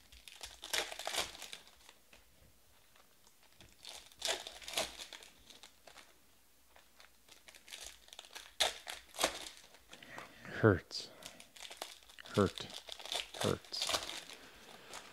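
Foil card wrappers crinkle and tear as hands open packs.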